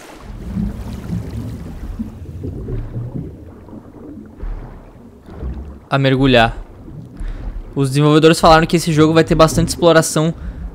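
Water swirls and bubbles around a swimmer underwater.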